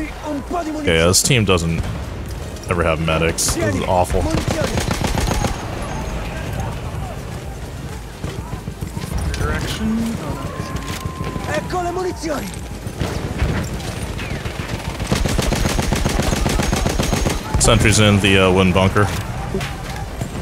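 A rifle fires single shots.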